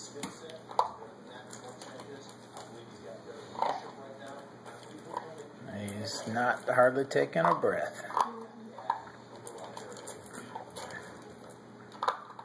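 A puppy eats noisily from a metal bowl, kibble clinking against the metal.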